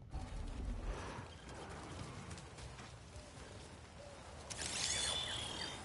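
Footsteps tread on grass and earth.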